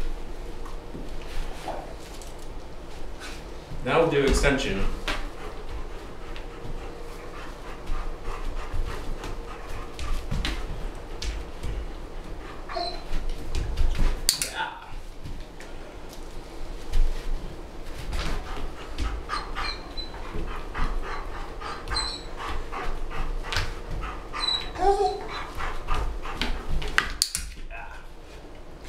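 A man talks calmly to a dog close by.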